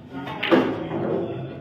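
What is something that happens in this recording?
A cue tip strikes a billiard ball with a sharp click.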